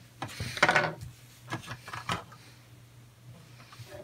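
A screwdriver is set down on a desk with a light knock.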